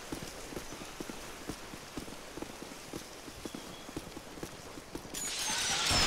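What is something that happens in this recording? Footsteps crunch steadily through grass and dirt.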